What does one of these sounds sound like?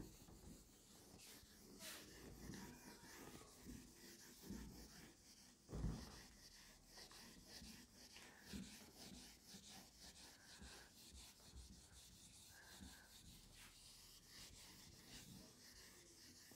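A felt eraser rubs softly across a whiteboard.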